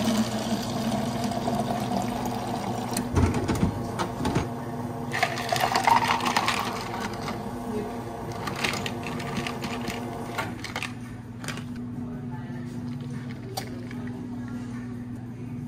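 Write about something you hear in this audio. A coffee machine hums steadily.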